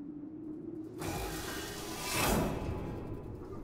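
A heavy door slides open with a loud hiss.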